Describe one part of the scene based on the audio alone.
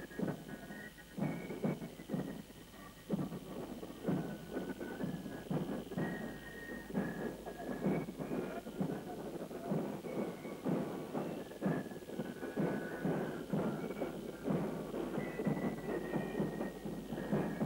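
A marching band of fifes plays a lively tune outdoors.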